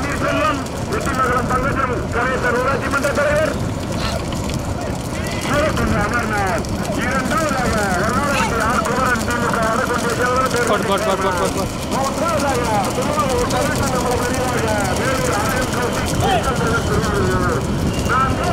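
Cart wheels rumble on a paved road.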